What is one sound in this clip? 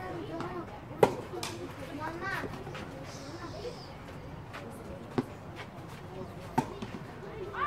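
A tennis ball is struck with a racket.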